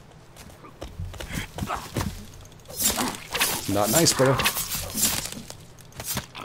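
A blade swings and hacks into a body with heavy thuds.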